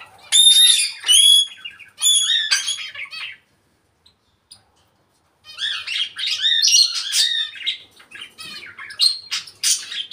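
A parrot whistles and chatters in loud, high bursts.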